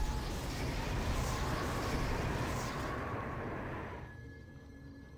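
A fiery magic blast roars and crackles, then fades away.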